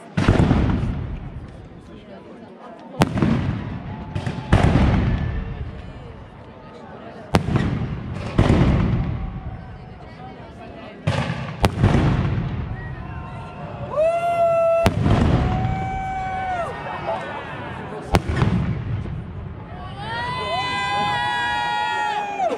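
Aerial firework shells burst with loud booms that echo outdoors.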